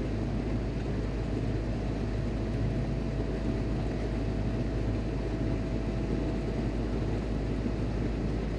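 A machine hums steadily close by.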